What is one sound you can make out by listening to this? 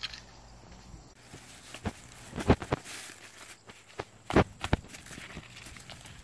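A plastic plant pot knocks and rustles as it is handled.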